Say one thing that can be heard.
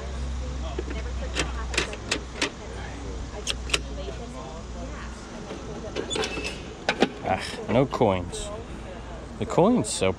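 Plastic keys on a toy cash register click as they are pressed.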